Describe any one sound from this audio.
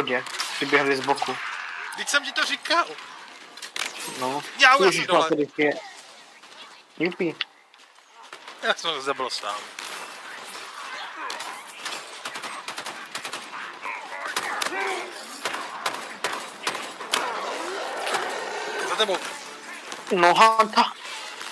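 Gunfire bursts in a video game.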